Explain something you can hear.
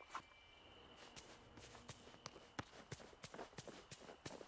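Light footsteps patter on grass at a steady pace.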